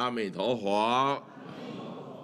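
An elderly man speaks in a drawn-out, singing voice through a microphone.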